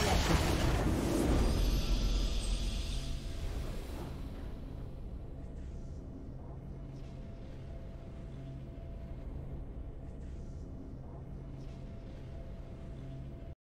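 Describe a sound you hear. A soft triumphant fanfare plays and lingers.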